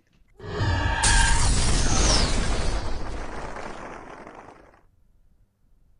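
Game spell effects whoosh and crackle loudly.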